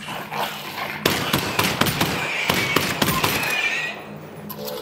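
Gunshots fire rapidly and echo.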